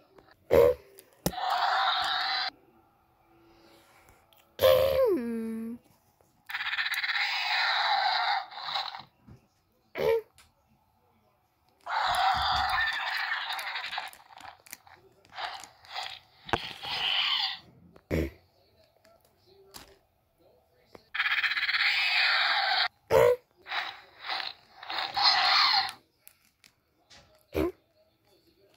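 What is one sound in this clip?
Plastic toy figures knock against each other.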